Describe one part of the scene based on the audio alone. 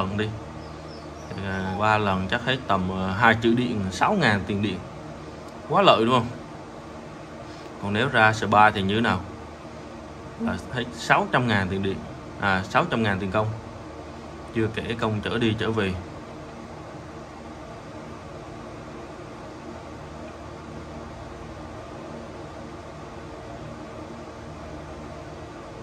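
A small fan hums steadily.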